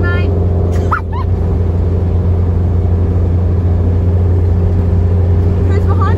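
A vehicle engine drones steadily from inside the cab.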